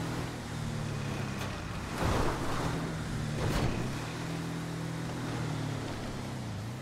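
An off-road buggy engine revs and drones steadily.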